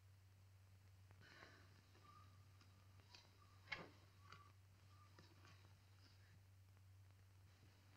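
A knife carves a roast, with soft scraping and clicking.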